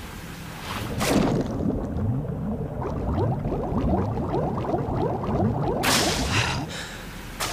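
Water bubbles and gurgles as a swimmer moves underwater.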